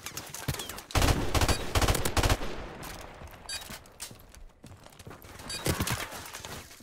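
A rifle fires rapid, loud bursts of gunshots.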